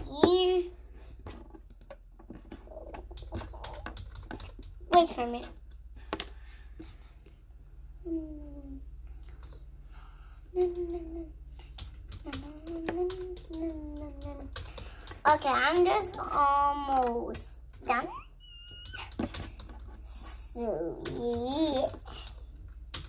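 A young girl speaks softly and sings close by.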